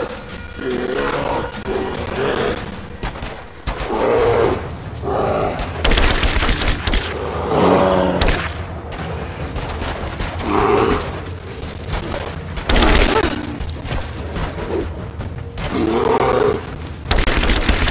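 A bear roars and growls close by.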